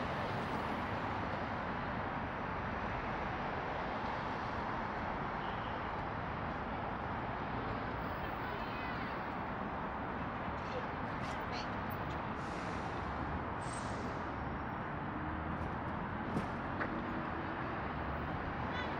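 Steady traffic noise rumbles along a busy street outdoors.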